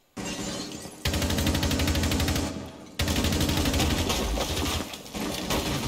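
An automatic rifle fires loud rapid bursts.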